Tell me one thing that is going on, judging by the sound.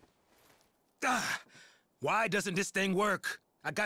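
A man asks with frustration.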